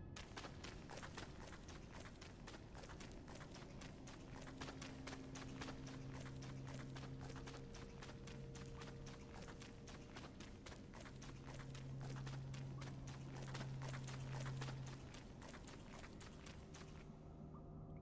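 Quick footsteps patter steadily on soft ground.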